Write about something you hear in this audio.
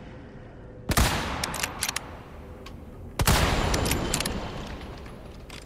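A rifle fires two loud shots that echo and fade.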